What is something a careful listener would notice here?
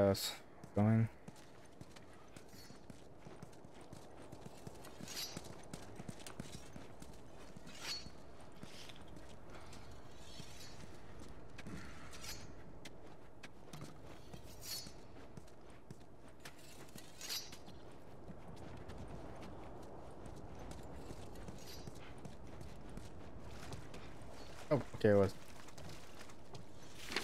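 Footsteps scuff slowly on a gritty street.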